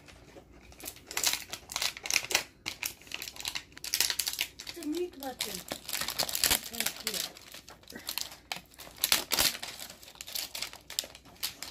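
Plastic wrap crinkles and rustles under hands.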